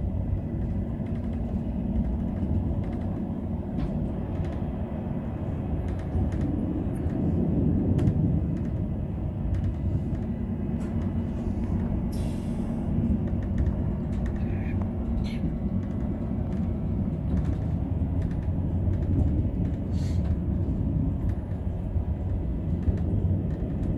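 A windscreen wiper swishes across the glass.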